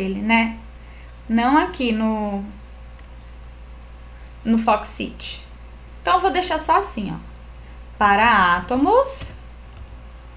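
A young woman speaks calmly into a microphone over an online call, in short phrases with pauses.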